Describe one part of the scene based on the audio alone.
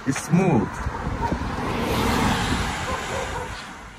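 A car drives past on the road.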